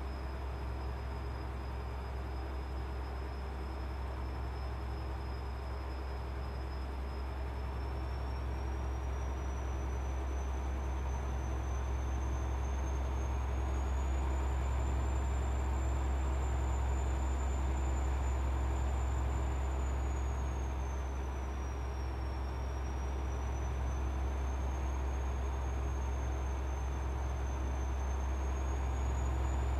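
A truck engine drones steadily, its pitch rising and falling slightly.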